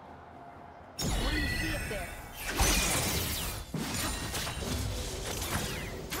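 Magic spell effects whoosh, crackle and clash in a fast fight.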